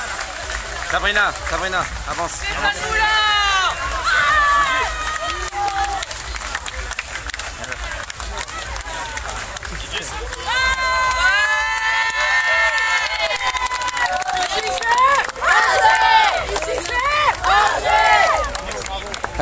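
Men and women in the crowd shout and cheer loudly nearby.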